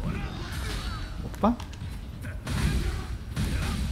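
Blade strikes land with fleshy thuds.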